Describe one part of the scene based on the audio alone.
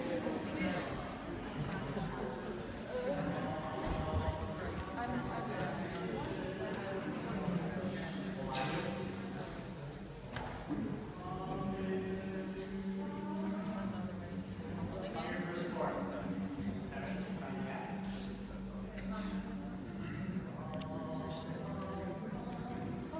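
A crowd of people sings together in a large echoing hall.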